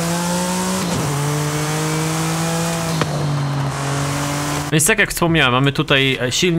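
A race car engine drones at high, steady speed.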